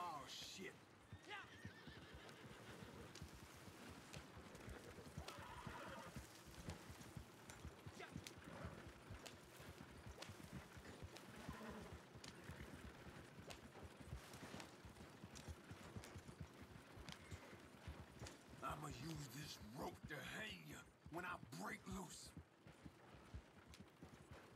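Horse hooves clop steadily.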